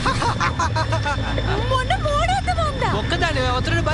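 A young man laughs and shouts excitedly.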